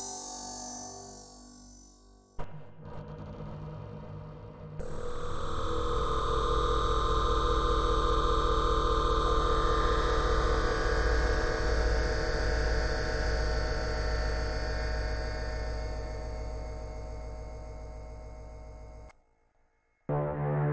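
A synthesizer plays a swelling, droning pad with shifting tones.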